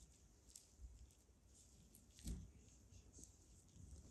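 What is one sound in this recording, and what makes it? A brush swishes softly across a surface.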